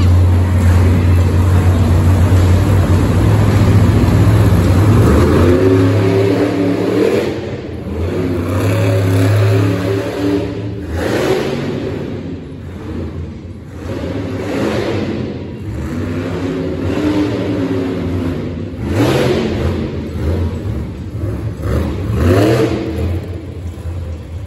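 A monster truck engine roars and revs loudly in a large echoing arena.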